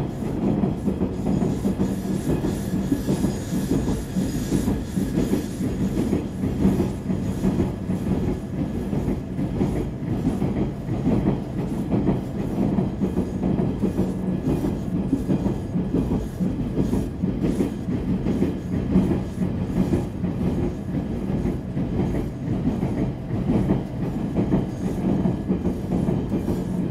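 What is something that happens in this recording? A subway train rumbles steadily along the tracks.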